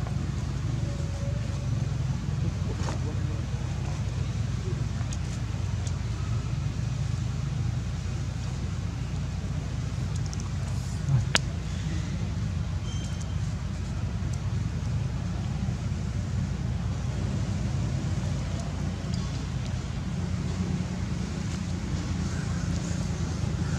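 Dry leaves rustle and crunch under monkeys' feet.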